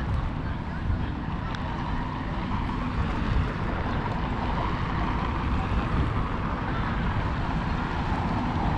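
Footsteps scuff on pavement nearby.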